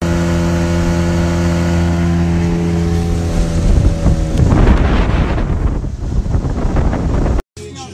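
Water rushes and splashes against a boat.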